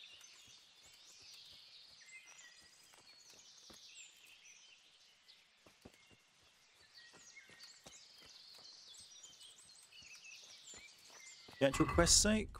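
Footsteps crunch softly through grass and leaves.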